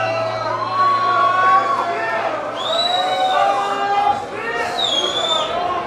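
A rock band plays loud live music in a large echoing hall.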